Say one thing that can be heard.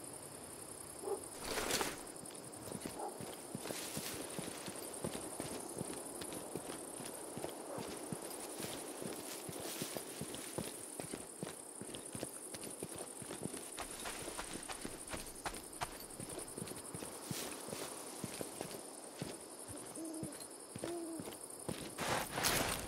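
Footsteps crunch through grass and leaves at a quick pace.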